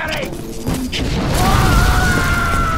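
A fireball bursts with a roar.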